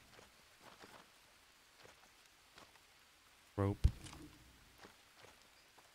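Footsteps rustle softly through dense leafy plants.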